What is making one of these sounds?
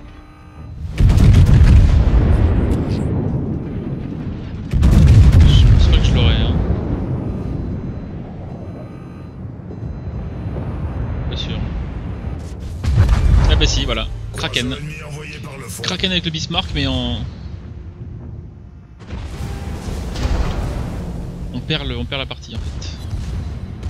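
Heavy naval guns fire loud booming salvos that rumble away.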